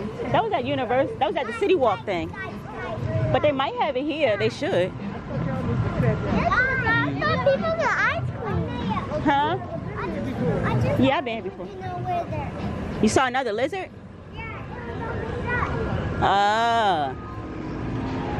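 Young children chatter and call out close by.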